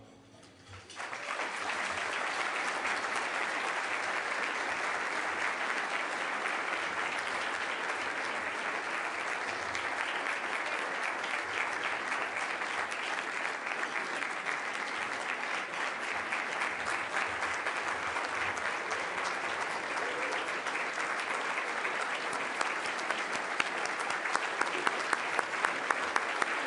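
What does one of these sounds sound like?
An audience applauds loudly and steadily.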